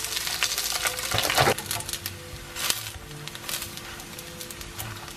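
A spatula scrapes and knocks against a frying pan.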